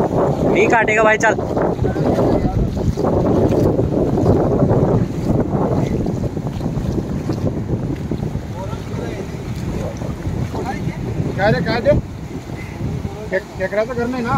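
Waves wash onto a shore in a steady roar.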